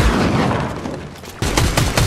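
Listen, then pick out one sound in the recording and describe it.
Shotgun blasts boom.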